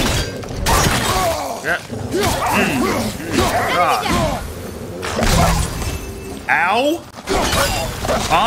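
Blows land with heavy thuds and clangs in a fight.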